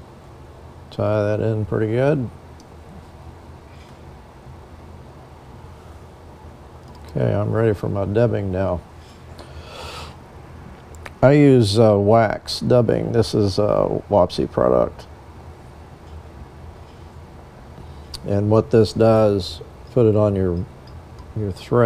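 A man speaks calmly and close, in short bursts with pauses.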